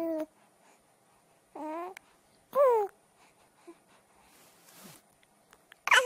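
A newborn baby makes short, high cooing cries close by.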